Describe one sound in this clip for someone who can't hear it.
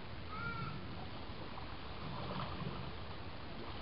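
A crocodile splashes through water.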